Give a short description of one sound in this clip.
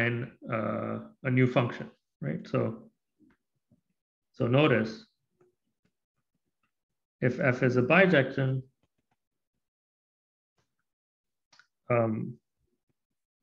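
A man speaks calmly through a microphone, explaining in short phrases with pauses.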